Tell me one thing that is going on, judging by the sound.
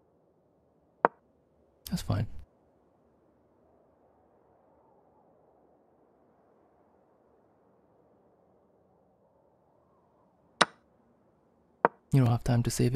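A chess piece is set down on the board with a sharp click.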